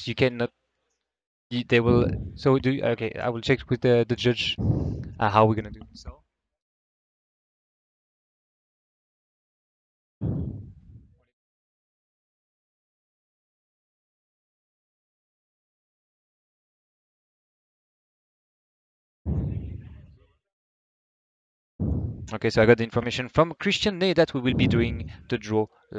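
A man speaks with animation through a microphone, in short bursts.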